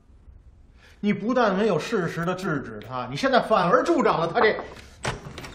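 A middle-aged man speaks sternly and firmly, close by.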